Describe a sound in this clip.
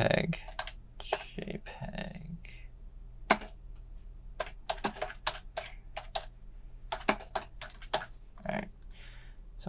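Computer keys click in quick taps.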